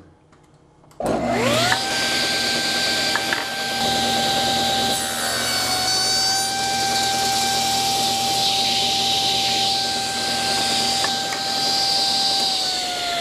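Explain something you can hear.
A table saw whines steadily as it spins.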